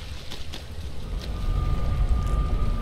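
A fiery portal roars and whooshes open.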